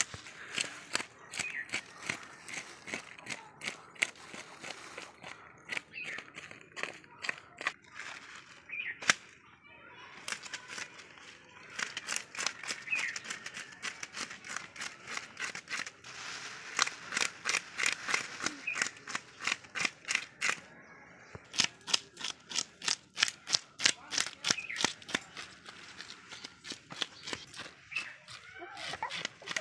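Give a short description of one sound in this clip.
A knife scrapes fish scales off in quick, rasping strokes.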